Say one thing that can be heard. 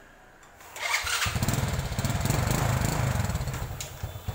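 A motorcycle engine starts and runs with a low, rapid putter.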